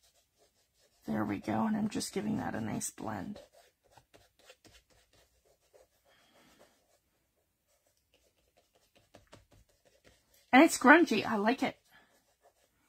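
Fingers rub and press softly on paper.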